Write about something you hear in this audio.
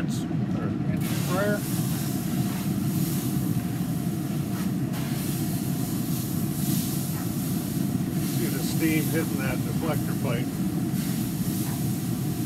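A spray bottle hisses as it mists.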